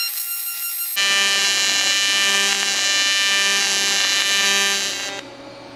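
A welding arc buzzes and hisses steadily.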